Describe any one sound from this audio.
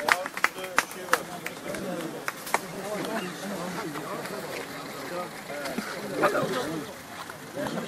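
A crowd of men talks and shouts nearby outdoors.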